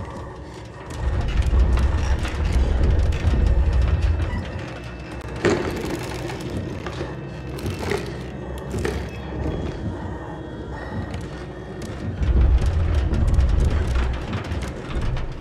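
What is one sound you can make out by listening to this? A deep, heavy rumble swells and fades.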